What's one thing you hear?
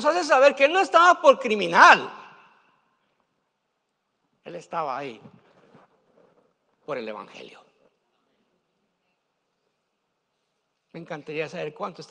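A middle-aged man preaches with animation into a microphone, pausing between phrases.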